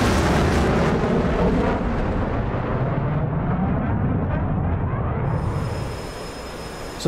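A jet engine roars steadily, then fades.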